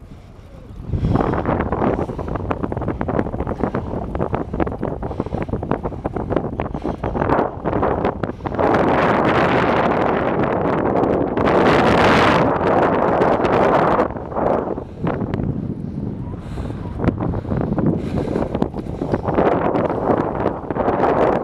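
Wind buffets and rushes past a moving bicycle rider.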